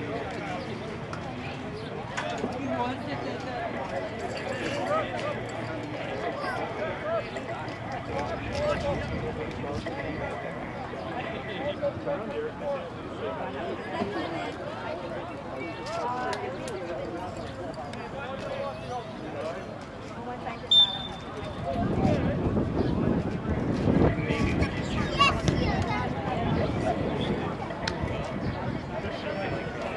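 Spectators chatter close by.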